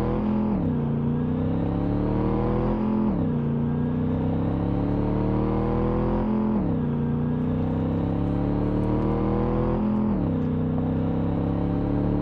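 A car engine revs hard, climbing in pitch and dropping with each gear change.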